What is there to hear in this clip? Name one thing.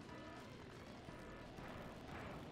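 Electronic countdown beeps sound at the start of a race.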